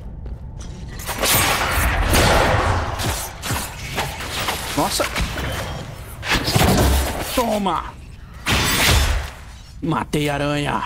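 Magic spells crackle and boom in a fight.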